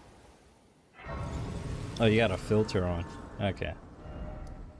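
A bright shimmering chime swells and fades.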